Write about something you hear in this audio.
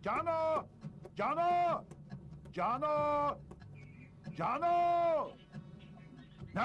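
An elderly man shouts loudly outdoors, calling out in long drawn cries.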